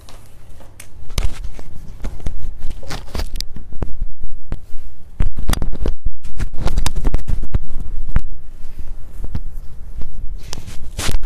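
Knocks and rustles sound as something is handled right against the microphone.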